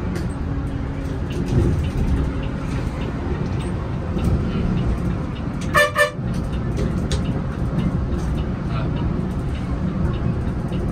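A large vehicle's engine rumbles steadily while driving.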